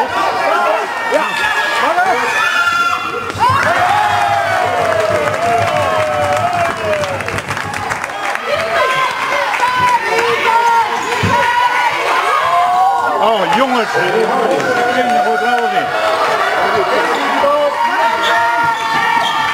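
Basketball players' sneakers squeak on a hard indoor court.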